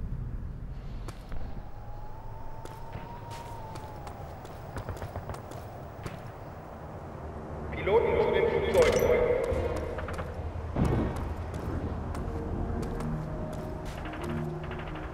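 Footsteps crunch steadily on the ground.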